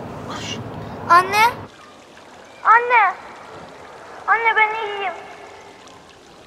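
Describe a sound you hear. A woman cries out urgently and with emotion.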